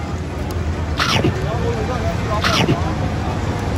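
A young man takes a crunchy bite of food.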